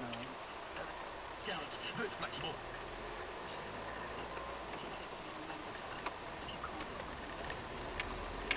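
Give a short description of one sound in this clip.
A car engine hums steadily from inside the car as it drives slowly.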